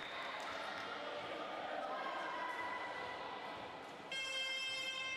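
Girls cheer and shout from the sidelines in a large echoing hall.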